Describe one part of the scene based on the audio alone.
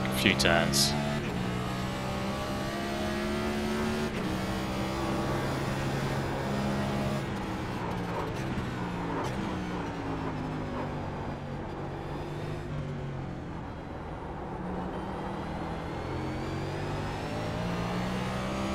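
A race car engine roars steadily, its pitch rising and dropping as it shifts gears.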